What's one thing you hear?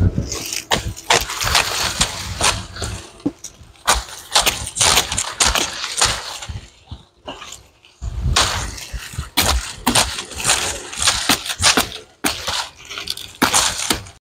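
A machete chops into wood with sharp thuds.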